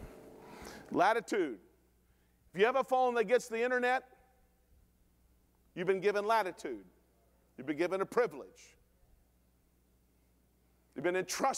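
A middle-aged man speaks with animation through a microphone in a large echoing room.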